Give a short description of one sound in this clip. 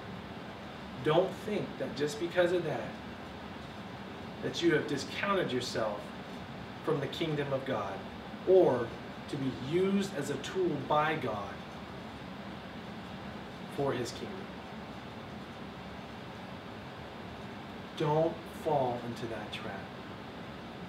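A man speaks calmly and clearly nearby, pausing between phrases.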